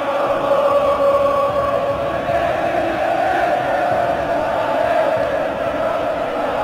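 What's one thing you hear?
A large stadium crowd chants loudly and steadily.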